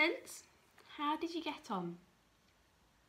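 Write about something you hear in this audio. A young woman speaks clearly and calmly, close to the microphone.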